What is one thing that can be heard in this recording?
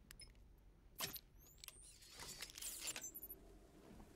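Electricity crackles and buzzes with sharp sparks.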